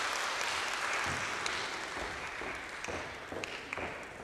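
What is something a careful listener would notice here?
Footsteps tap on a wooden stage.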